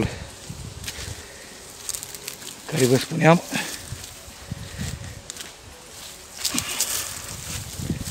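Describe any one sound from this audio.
Leafy branches rustle as a hand pushes through them.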